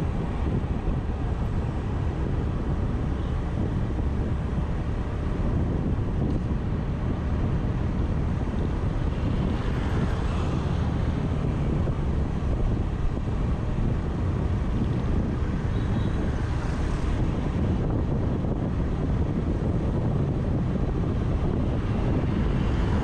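Wind rumbles past the rider.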